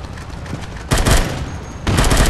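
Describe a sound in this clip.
An assault rifle fires a short burst.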